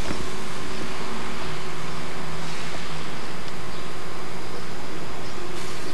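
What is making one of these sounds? Metal tongs click against a grill grate.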